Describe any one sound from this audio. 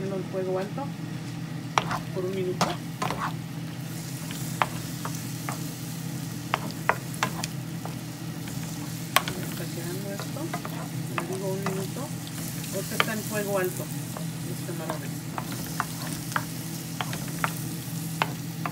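A wooden spatula scrapes and knocks against a pan.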